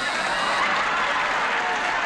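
A woman gasps in surprise.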